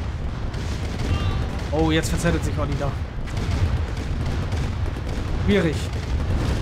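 Shells explode with low booms.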